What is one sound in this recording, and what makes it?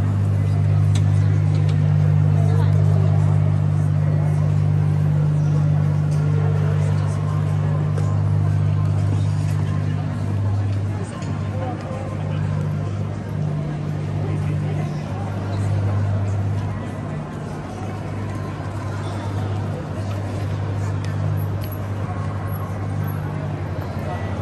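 Footsteps tap on paving nearby.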